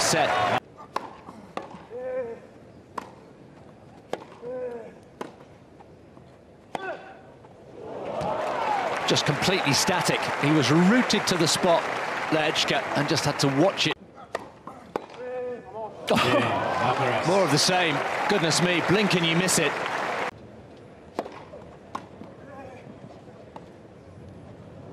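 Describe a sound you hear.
A tennis ball is struck with sharp, hollow pops in a rally.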